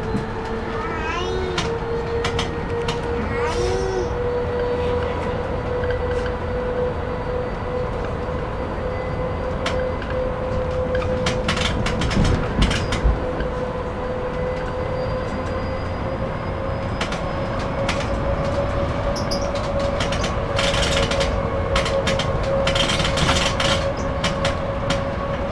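A bus engine hums and rumbles steadily from inside.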